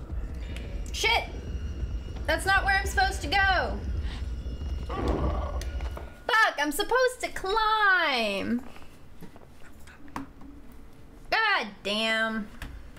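A young woman talks and exclaims with animation close to a microphone.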